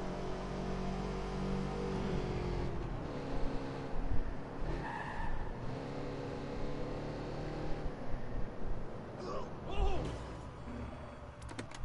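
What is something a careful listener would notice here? A van engine hums steadily as it drives.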